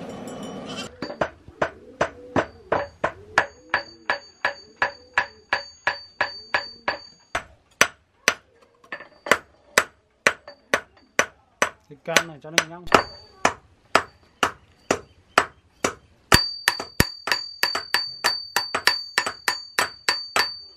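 A hammer strikes hot metal on an anvil in a quick, steady rhythm, ringing sharply.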